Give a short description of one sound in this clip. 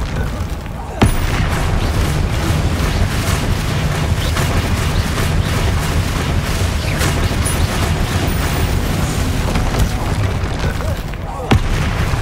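A heavy blow slams with a sharp crash.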